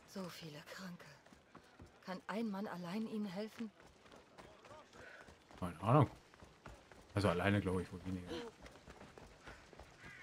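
Footsteps crunch on gravel and stone at a running pace.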